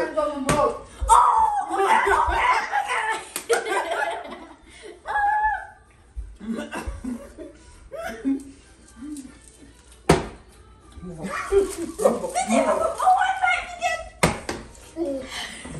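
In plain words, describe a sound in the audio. A woman and a girl laugh loudly close by.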